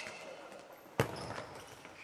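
A ball is kicked with a loud thump in a large echoing hall.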